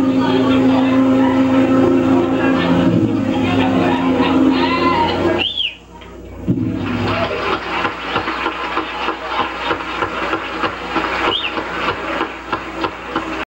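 A live band plays loudly through loudspeakers in a large echoing hall.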